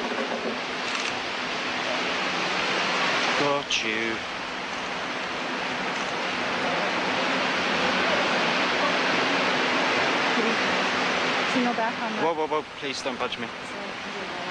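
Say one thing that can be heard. Water splashes as a dolphin is dragged against a boat's side.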